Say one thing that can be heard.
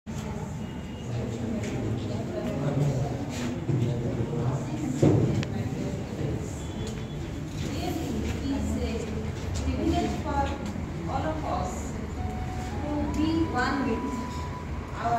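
Many young people chatter in a large echoing room.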